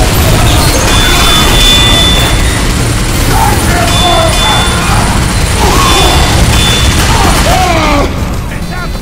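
A heavy machine gun fires in a loud, rapid roar.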